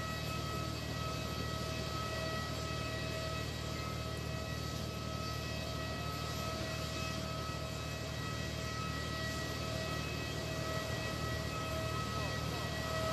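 A jet engine whines steadily nearby.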